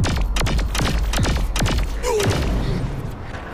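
An energy weapon fires sharp shots in quick succession.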